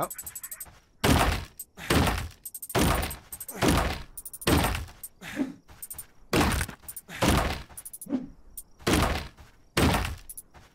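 Heavy blows strike stone again and again, with a crunch of rock breaking.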